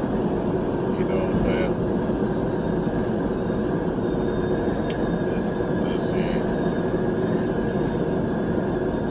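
A car engine hums steadily with road rumble from the tyres.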